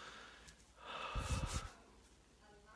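A man shushes softly close to a microphone.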